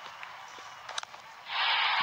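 A bat strikes a cricket ball with a sharp crack.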